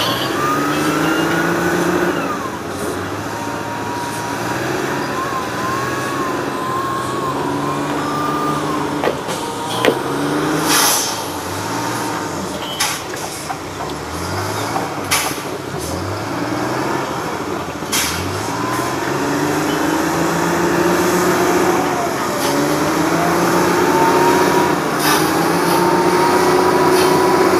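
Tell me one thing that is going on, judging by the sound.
A forestry machine's engine drones and revs steadily in the distance.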